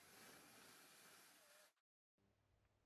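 An electric drill whirs loudly as it bores into wood.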